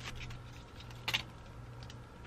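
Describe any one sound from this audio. Dried kelp drops into a metal pot with a soft clatter.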